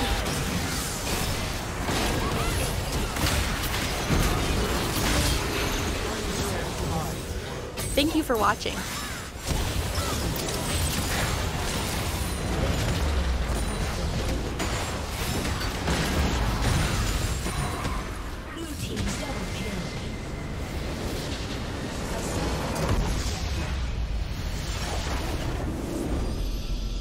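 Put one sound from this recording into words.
Video game battle effects crackle, clash and boom without pause.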